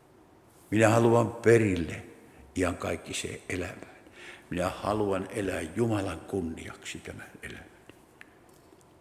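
An elderly man speaks with emphasis through a microphone in a room with a slight echo.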